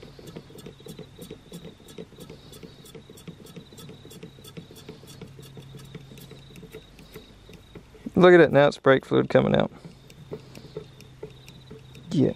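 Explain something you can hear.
A hand pump squeaks and hisses as it is pumped.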